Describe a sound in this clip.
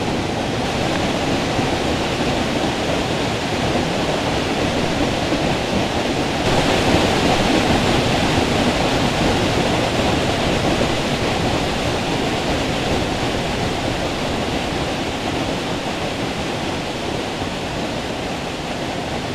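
A waterfall rushes and splashes steadily, growing louder up close.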